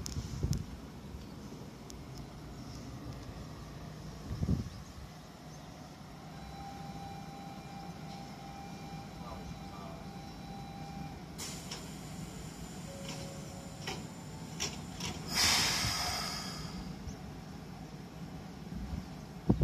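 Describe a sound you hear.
A standing train hums steadily.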